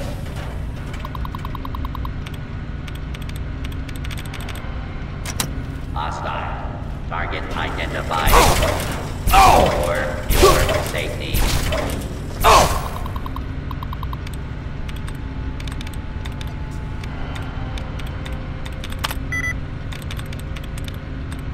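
A computer terminal beeps and clicks with rapid keystrokes.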